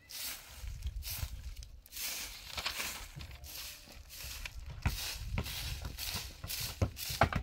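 A broom sweeps and swishes across dry dirt in repeated strokes.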